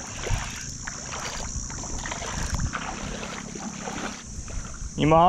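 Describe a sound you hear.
A fishing reel whirs as its handle is wound.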